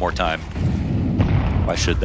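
A grenade explodes with a deep rumbling blast.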